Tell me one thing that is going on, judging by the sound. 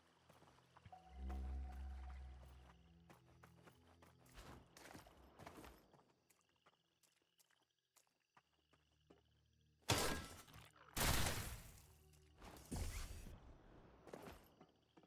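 A video game gun fires with loud bursts.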